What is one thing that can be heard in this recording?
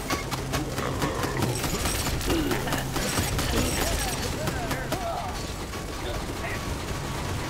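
Rapid gunfire sounds from a video game.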